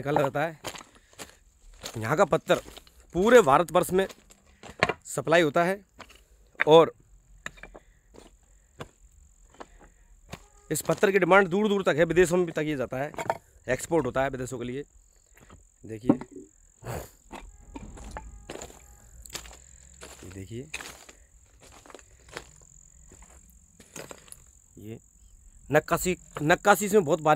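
Footsteps crunch on loose stones.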